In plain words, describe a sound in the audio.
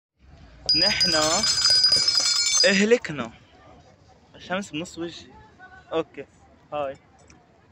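A young man speaks with animation close to a phone microphone.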